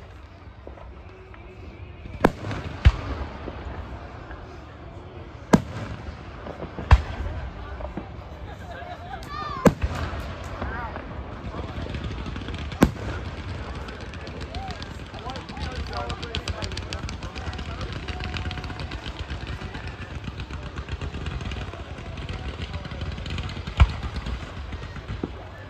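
Firework fountains crackle and hiss.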